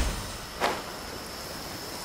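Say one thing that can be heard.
Wind rushes past during a glide.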